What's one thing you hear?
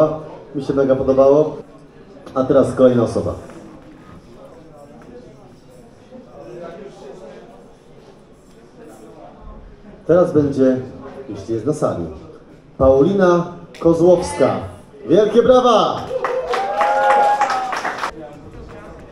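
A young man sings loudly into a microphone in an echoing room.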